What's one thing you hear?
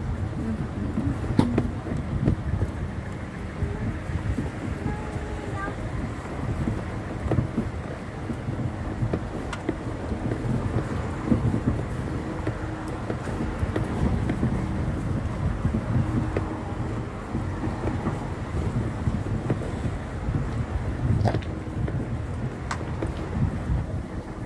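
Strong wind blows and buffets the microphone outdoors.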